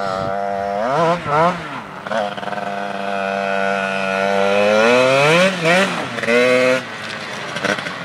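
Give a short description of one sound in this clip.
A small two-stroke dirt bike revs hard and drops back as it rides.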